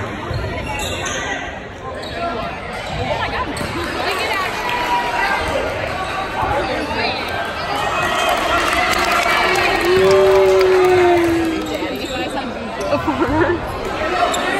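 A crowd of young people chatters and cheers in a large echoing gym.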